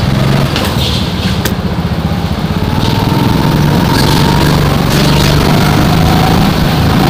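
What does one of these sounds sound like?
Other go-kart engines buzz nearby in an echoing indoor hall.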